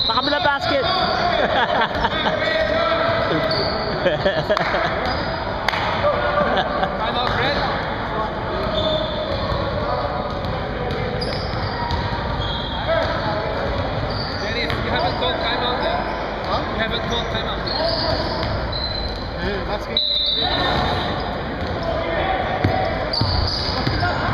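Men talk and call out loudly around a gym.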